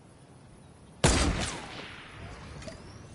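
A sniper rifle fires a single loud shot that echoes away.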